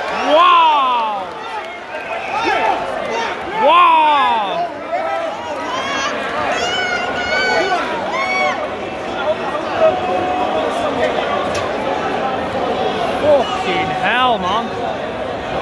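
Spectators whistle shrilly.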